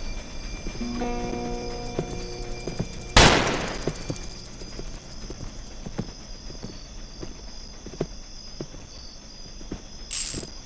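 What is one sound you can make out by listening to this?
Footsteps thud softly on the ground at a steady running pace.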